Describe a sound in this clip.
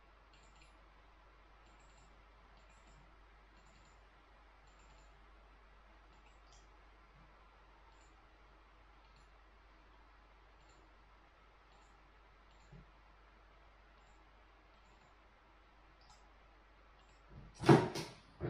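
Keys click softly on a computer keyboard.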